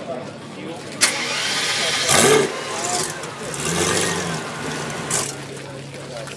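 A sports car engine revs loudly in short bursts.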